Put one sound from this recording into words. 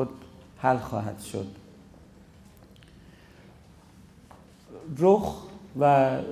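A man speaks calmly into a microphone, reciting slowly with long pauses.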